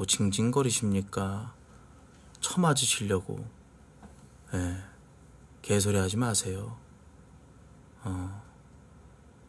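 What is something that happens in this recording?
A man talks casually into a nearby microphone in short bursts.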